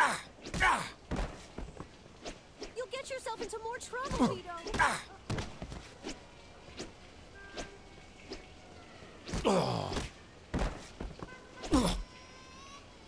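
Punches thud in a fistfight.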